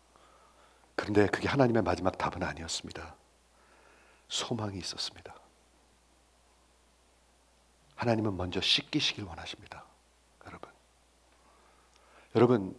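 A middle-aged man speaks calmly and warmly into a microphone, with pauses between phrases.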